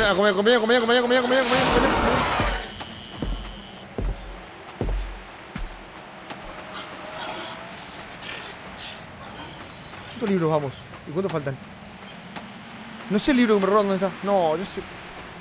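A young man talks loudly and expressively into a close microphone.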